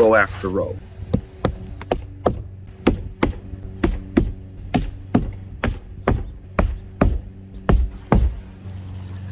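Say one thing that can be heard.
A hammer pounds nails with sharp, quick knocks.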